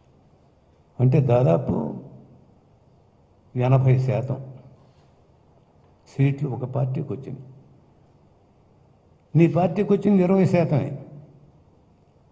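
An elderly man speaks slowly into a microphone in short bursts with pauses.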